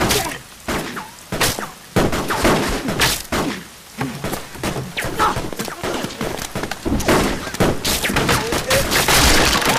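Bullets thud into wood.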